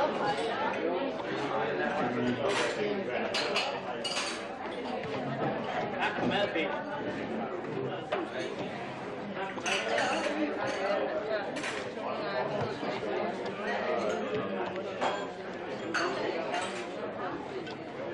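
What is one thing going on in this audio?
Many adults chatter and talk at once in a busy room.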